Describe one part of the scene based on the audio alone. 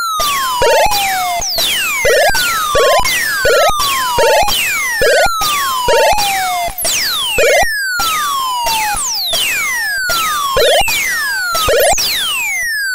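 A video game plays short buzzing bursts as enemies are hit.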